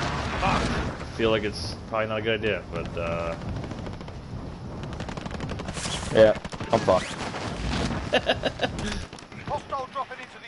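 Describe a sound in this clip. A young man talks with animation through a microphone.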